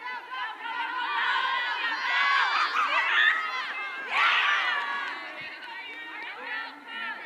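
Young men and women shout and call out to one another outdoors across an open field.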